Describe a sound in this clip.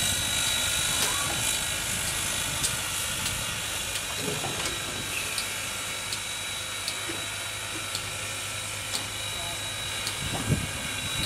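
Metal clicks and clanks as a turntable rotates.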